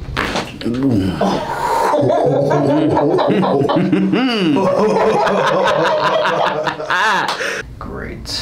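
A man laughs loudly and heartily close by.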